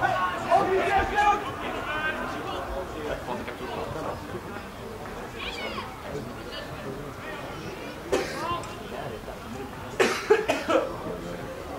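Young male players shout to each other outdoors.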